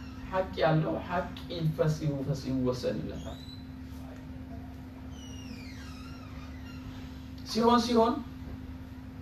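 A middle-aged man speaks calmly and close by, with pauses.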